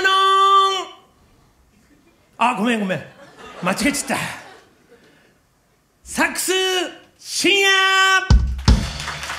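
A saxophone plays short, bright phrases up close.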